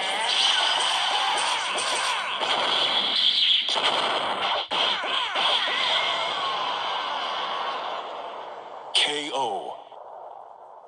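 Game fight sounds of punches and blasts clash rapidly.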